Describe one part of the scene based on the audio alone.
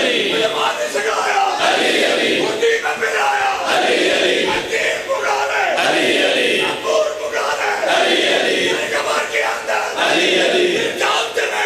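A man chants loudly through a microphone in a reverberant hall.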